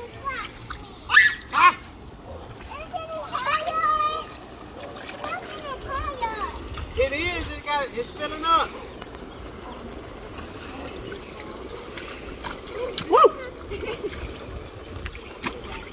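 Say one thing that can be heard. Feet splash in shallow water.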